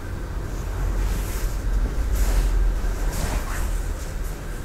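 Cloth rustles as a person rises to their feet.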